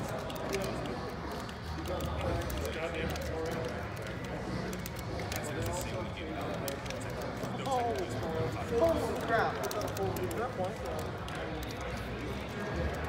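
Upbeat video game music plays through a speaker.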